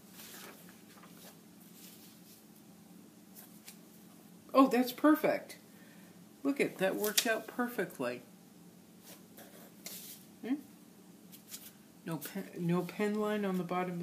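Paper rustles and slides on a board.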